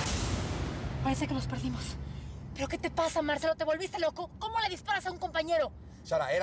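A woman speaks urgently close by.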